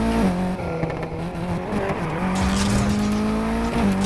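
Tyres screech as the car drifts through a corner.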